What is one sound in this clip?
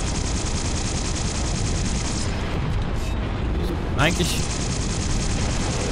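A weapon fires a burst of sharp, whizzing shots.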